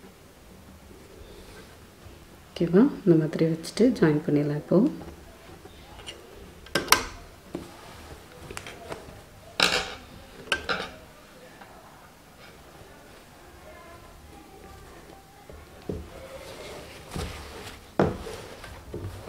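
A sewing machine stitches with a fast rattling hum.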